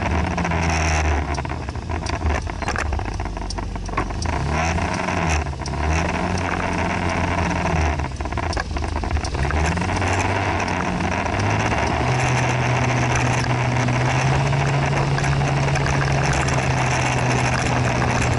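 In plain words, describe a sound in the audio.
Wind rushes steadily past the microphone.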